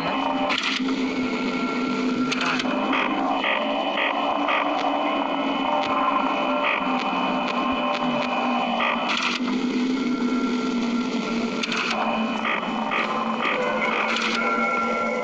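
An electric desk fan hums and whirs.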